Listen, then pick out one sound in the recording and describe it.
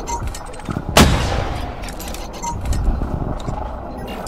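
Laser guns fire in quick bursts.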